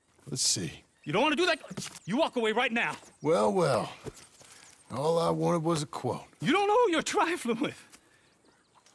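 A man speaks calmly in a low, gruff voice, close by.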